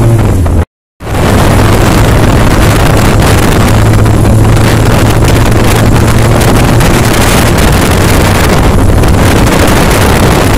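A motorcycle engine drones while riding along a road.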